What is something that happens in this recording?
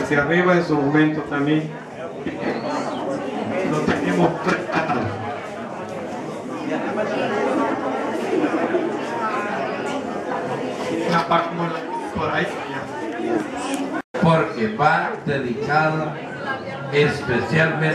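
A crowd of young men and women chatter and cheer loudly nearby.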